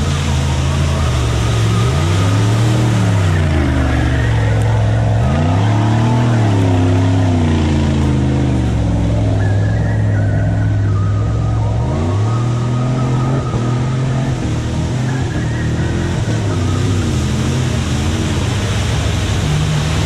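Mud and water splash under spinning tyres.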